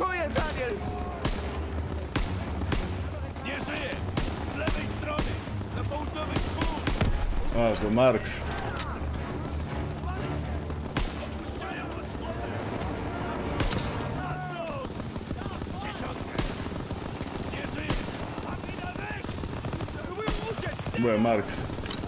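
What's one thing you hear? Rifle shots fire one at a time.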